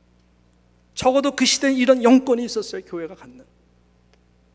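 A middle-aged man speaks with emphasis into a microphone.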